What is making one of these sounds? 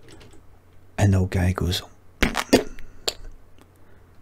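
A middle-aged man speaks with animation, close into a microphone.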